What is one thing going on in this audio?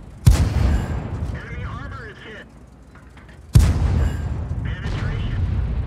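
A tank engine rumbles low and steadily.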